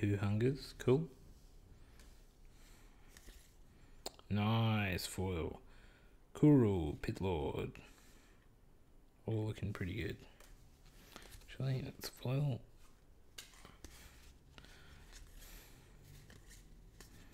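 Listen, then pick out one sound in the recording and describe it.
Stiff cards slide and flick against each other in hands.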